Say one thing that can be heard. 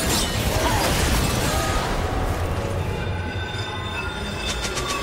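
Video game spell effects crackle and clash in a busy fight.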